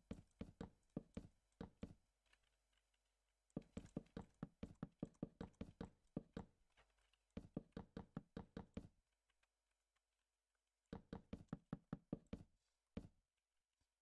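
Wooden blocks knock softly as they are placed one after another.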